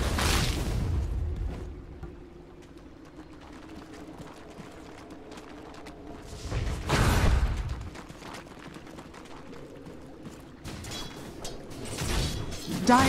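Game combat effects clash and crack in quick bursts.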